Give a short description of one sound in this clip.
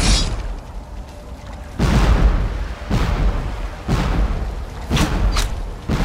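Ship cannons boom and shells burst in explosions.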